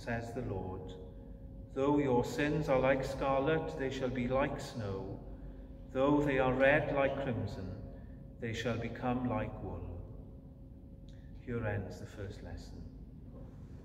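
A middle-aged man speaks calmly, echoing in a large hall.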